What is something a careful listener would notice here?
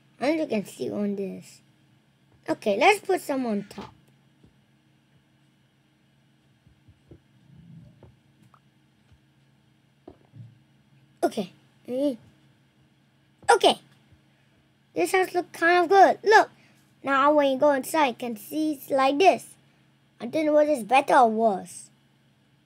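A young boy talks with animation close to a microphone, in bursts with pauses.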